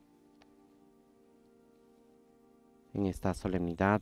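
An organ plays steady, sustained chords in a large echoing hall.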